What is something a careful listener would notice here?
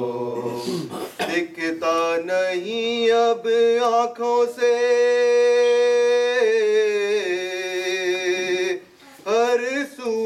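A man sings a mournful lead melody loudly.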